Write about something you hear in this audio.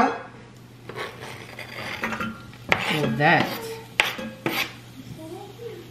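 Chopped onion is scraped off a board into a pot.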